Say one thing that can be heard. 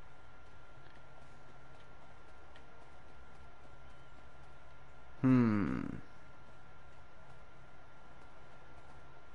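Light footsteps run across sand.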